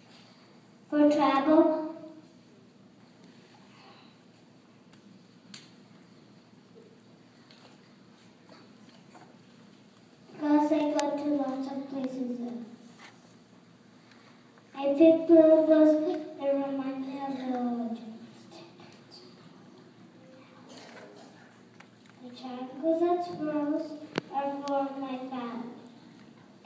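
A woman speaks loudly over a loudspeaker in a large echoing hall.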